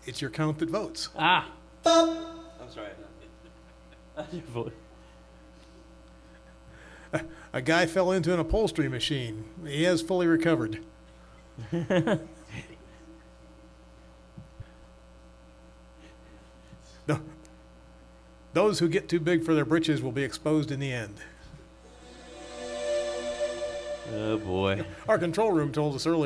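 An elderly man reads aloud through a microphone, in short bursts with pauses.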